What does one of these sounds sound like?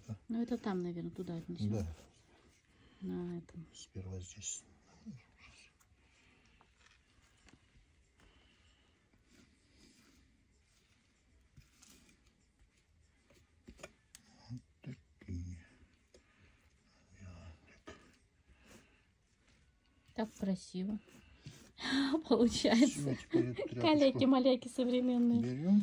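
A trowel scrapes and smears thick paste across a wooden board.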